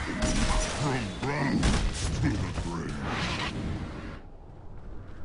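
Video game combat effects clash and crackle loudly.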